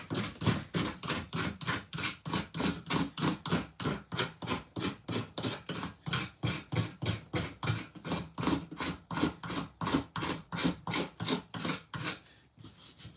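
A file rasps rapidly back and forth across metal.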